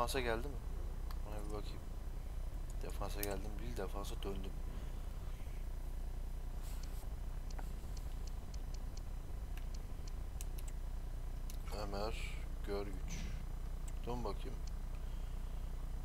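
Soft menu clicks tick as selections change.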